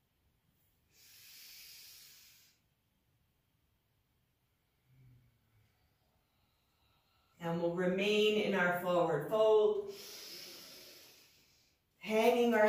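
A woman exhales deeply.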